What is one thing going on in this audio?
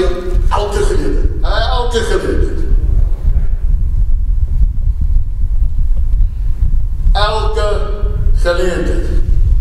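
A man preaches with feeling into a microphone, heard through loudspeakers in a large echoing hall.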